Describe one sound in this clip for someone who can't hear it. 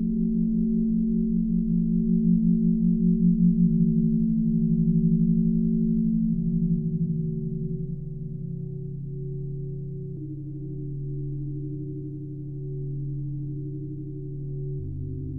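A synthesizer drones with low, slowly shifting tones.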